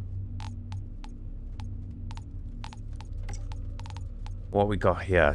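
Soft interface clicks tick in quick succession.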